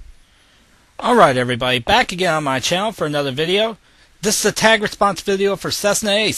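A young man talks calmly and close to the microphone.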